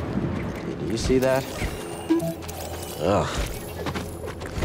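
A small robot chirps and warbles in quick electronic beeps.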